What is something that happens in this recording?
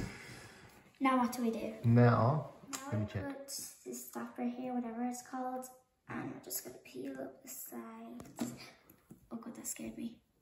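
A young girl talks calmly and clearly to the listener.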